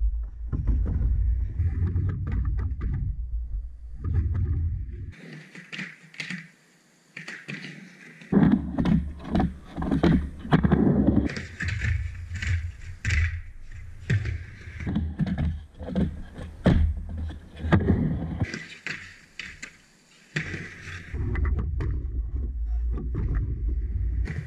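Skateboard wheels roll and rumble on a wooden ramp.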